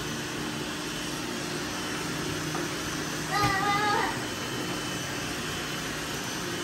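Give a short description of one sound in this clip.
Several robot vacuums hum and whir steadily close by.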